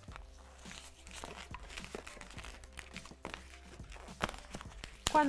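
Rubber balloons squeak as they are twisted.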